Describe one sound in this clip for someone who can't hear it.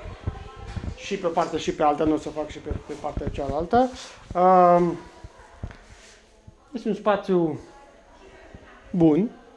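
A man speaks calmly into a microphone up close.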